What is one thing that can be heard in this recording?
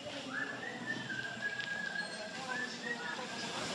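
Busy street noise hums in the background.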